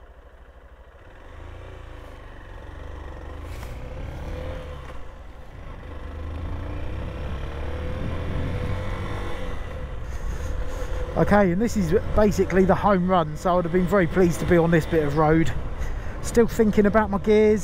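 A motorcycle engine revs and pulls away, rising as it speeds up.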